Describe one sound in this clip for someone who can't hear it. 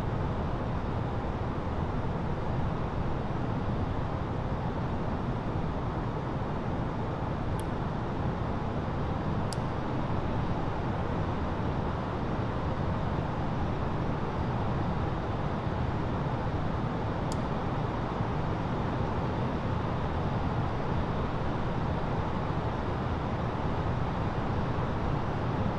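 A steady low roar of airliner engines and rushing air fills a cockpit.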